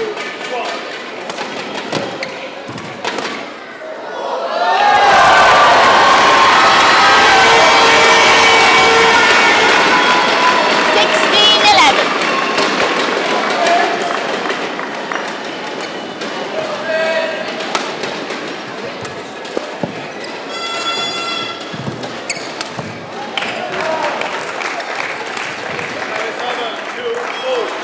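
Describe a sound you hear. Rackets hit a shuttlecock back and forth with sharp pops.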